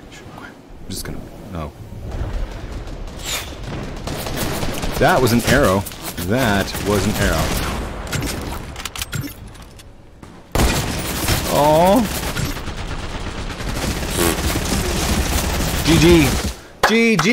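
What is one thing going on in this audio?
A middle-aged man talks with animation into a close microphone.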